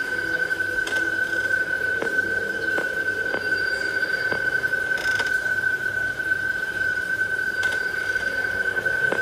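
A game's steady electronic hum drones throughout.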